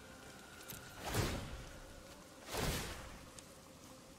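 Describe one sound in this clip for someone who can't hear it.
A card game plays a loud whooshing sound effect as a card is played.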